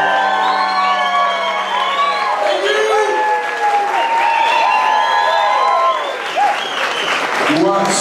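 A man whoops and hollers loudly.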